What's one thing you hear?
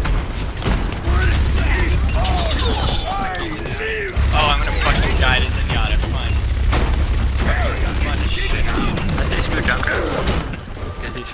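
A heavy gun fires in rapid, rumbling bursts.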